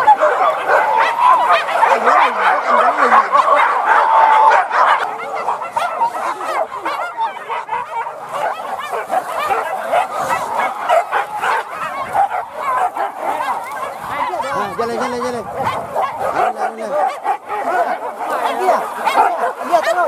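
Dogs bark and yelp excitedly outdoors.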